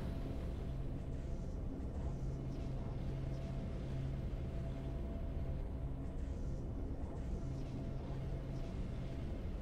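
Triumphant game music plays steadily.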